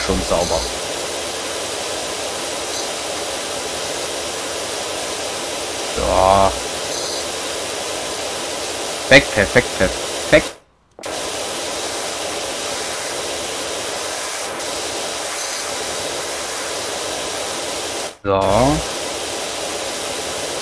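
A pressure washer sprays a hissing jet of water against a hard surface.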